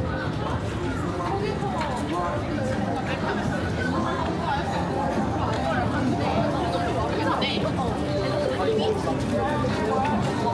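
A crowd of people chatters nearby outdoors on a busy street.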